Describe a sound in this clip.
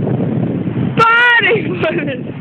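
A boy shouts loudly from a distance.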